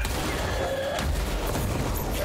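An explosion bursts with a deep rumble.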